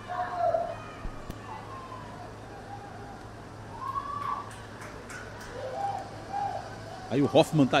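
Young women shout to each other across an open outdoor field.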